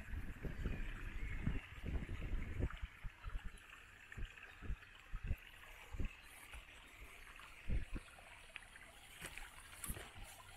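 Footsteps thud slowly on soft forest ground.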